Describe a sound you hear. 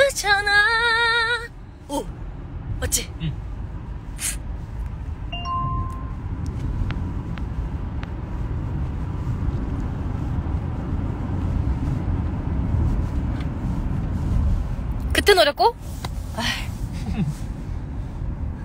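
A car engine rumbles low and steady.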